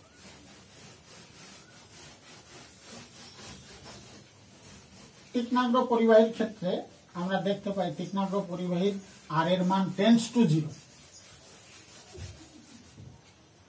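A cloth rubs across a chalkboard.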